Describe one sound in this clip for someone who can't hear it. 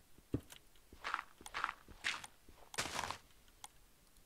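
A shovel digs into loose ground with short crunchy scrapes.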